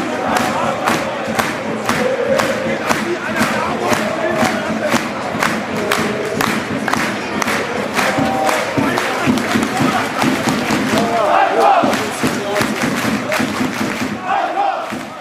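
A large stadium crowd claps in a steady rhythm.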